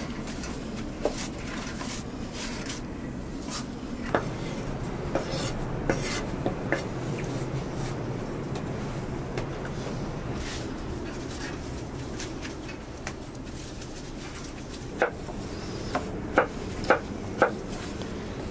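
Dough slaps against a floured surface.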